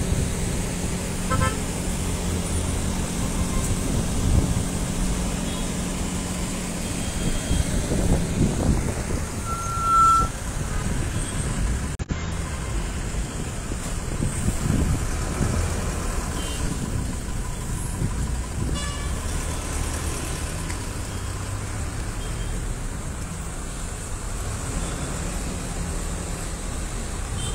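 Traffic engines idle and rumble steadily outdoors.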